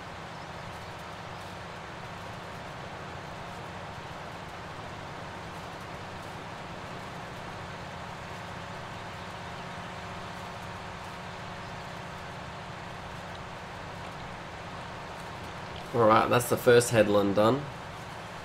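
A tractor engine drones steadily at a low pitch.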